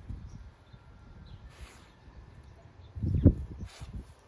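A dog sniffs at the grass.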